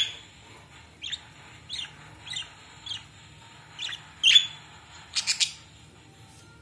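A budgie chirps and squawks in short bursts close by.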